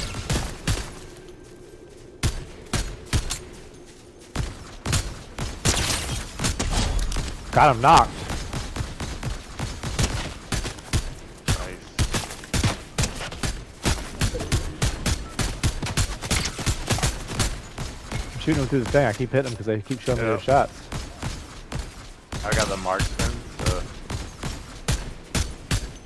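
A gun fires shots in quick bursts.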